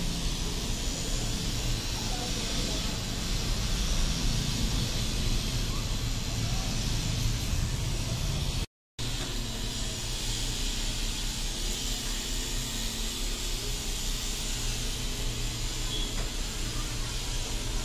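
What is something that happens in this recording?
A tattoo machine buzzes steadily close by.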